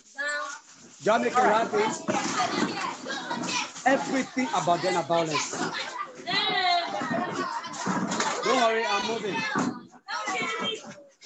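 A crowd of children sings and claps together over an online call.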